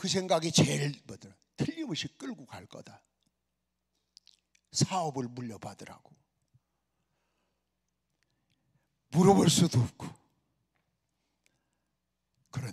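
A man preaches with animation into a microphone, in bursts with pauses.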